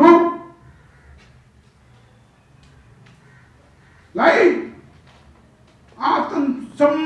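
An elderly man speaks forcefully into a microphone, heard through loudspeakers.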